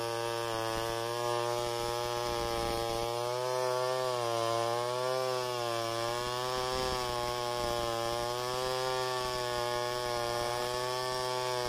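A chainsaw engine whines steadily, wavering in pitch as it cuts through wood.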